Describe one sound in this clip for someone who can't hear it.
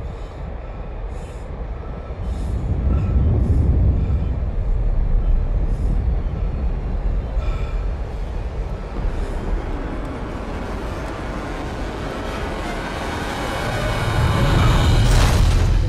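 Jet thrusters roar loudly with a deep rumble.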